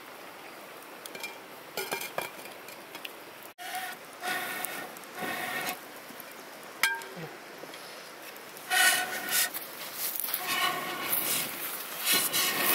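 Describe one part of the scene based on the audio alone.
A wood fire crackles.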